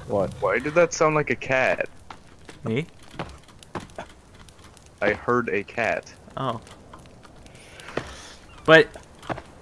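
A torch fire crackles and hisses.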